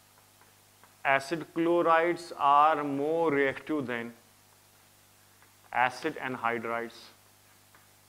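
A man speaks calmly and clearly close to a microphone.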